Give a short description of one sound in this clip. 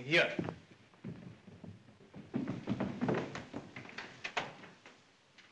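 Footsteps hurry down wooden stairs.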